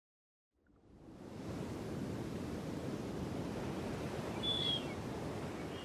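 Waves crash and wash against a rocky shore.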